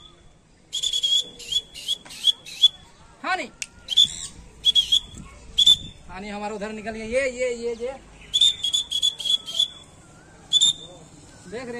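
A parrot squawks in short, shrill bursts.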